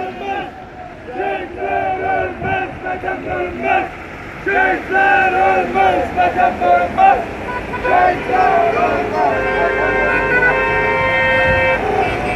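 Car horns honk repeatedly.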